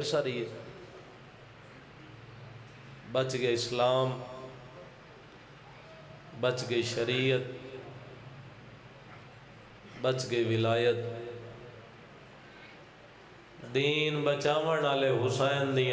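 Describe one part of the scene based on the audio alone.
A young man recites in bursts through a microphone and loudspeakers, with echo.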